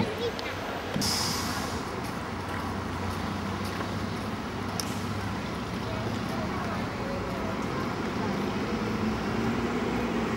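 City traffic rumbles steadily on a nearby road.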